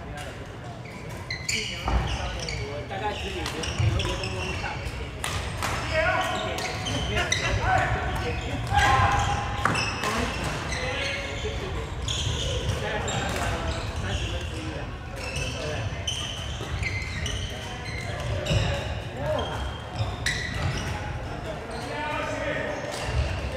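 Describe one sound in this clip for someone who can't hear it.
Shuttlecocks are struck with sharp pops of badminton rackets.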